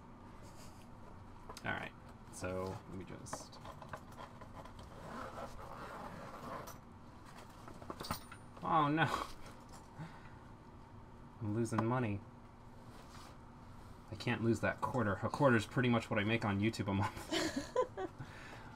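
Hands rub and tap against a fabric backpack, with small metal pins clicking.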